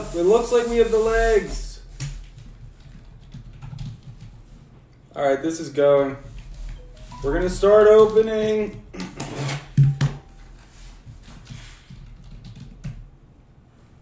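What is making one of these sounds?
Cardboard scrapes and rustles as a box is handled.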